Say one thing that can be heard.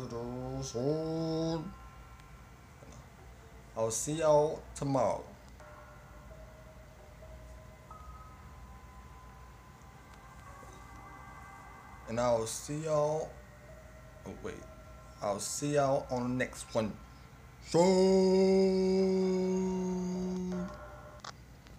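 A young man talks loudly and with animation into a microphone.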